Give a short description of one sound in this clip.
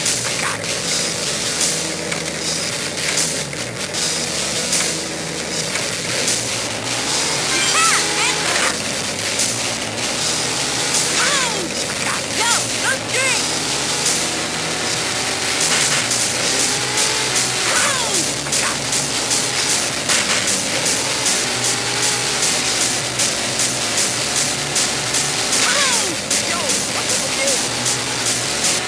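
A car engine revs steadily.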